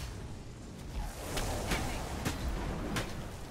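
Magic blasts crackle and strike during a fight.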